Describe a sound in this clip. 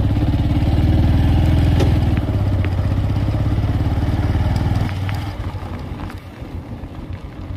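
A motorcycle engine putters loudly up close, then slows down and quietens.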